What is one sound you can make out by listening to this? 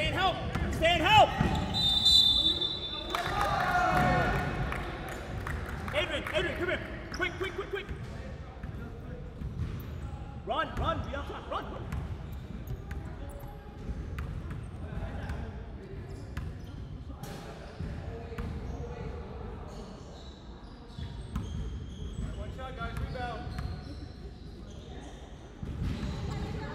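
Young players shout and call out across the court.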